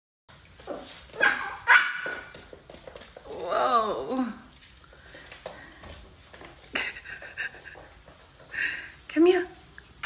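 A puppy yaps sharply.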